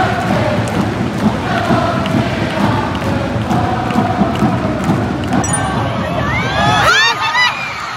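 A large stadium crowd chants and sings loudly in unison.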